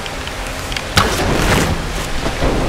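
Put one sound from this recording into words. An arrow is released with a sharp twang and whoosh.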